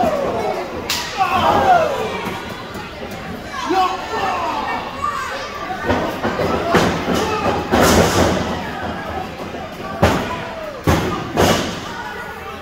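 Bodies slam onto a wrestling ring mat with loud thuds.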